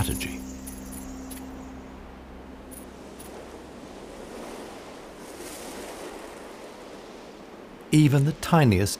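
Wind blows sand in a soft, steady hiss.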